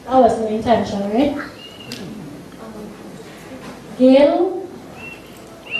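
A young woman speaks into a microphone over loudspeakers in a large echoing hall.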